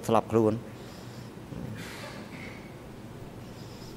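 A middle-aged man coughs.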